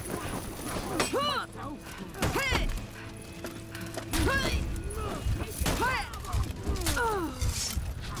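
Steel swords clash and ring.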